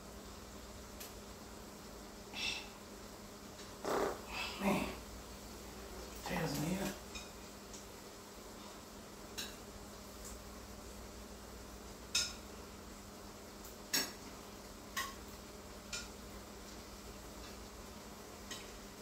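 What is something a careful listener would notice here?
Metal kitchenware clinks and knocks on a stovetop.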